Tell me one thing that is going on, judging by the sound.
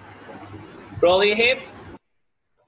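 A man speaks briefly and loudly over an online call.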